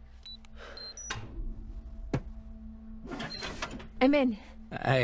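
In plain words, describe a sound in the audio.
A safe's dial clicks as it turns.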